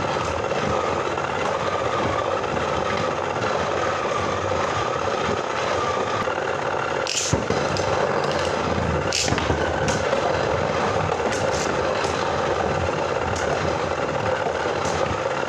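Spinning tops whir and hum steadily.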